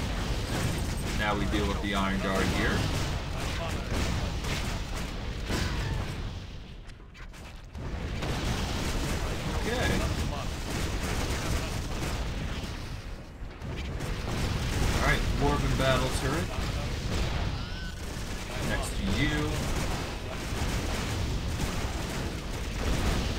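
Magic blasts crackle and boom again and again during a fight.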